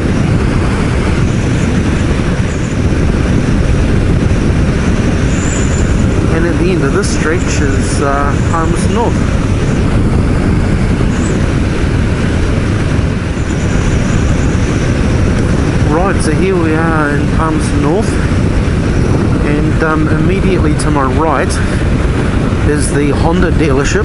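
Wind roars and buffets loudly against a moving motorcycle rider.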